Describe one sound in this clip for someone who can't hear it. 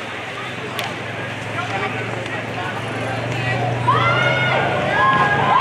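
A crowd murmurs in an open-air stand.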